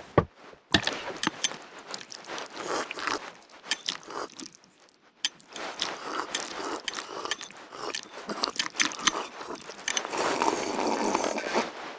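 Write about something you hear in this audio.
Noodles are slurped noisily.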